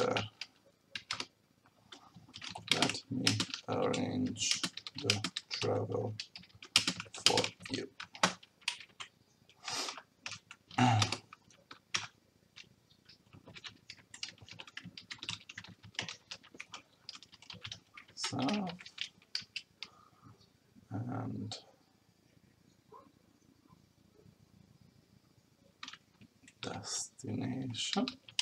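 Keys click rapidly on a keyboard.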